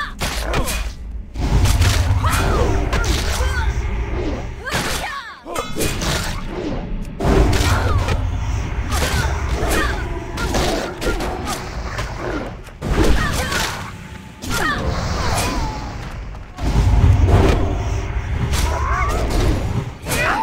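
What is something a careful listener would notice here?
Weapons strike and clang in a fight.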